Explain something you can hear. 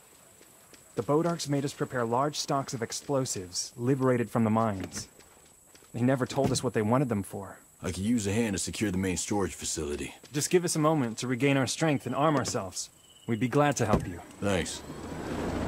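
A man speaks calmly and earnestly nearby.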